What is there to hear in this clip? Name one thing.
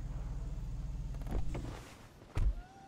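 A car engine runs.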